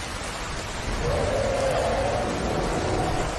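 A dragon roars in the distance.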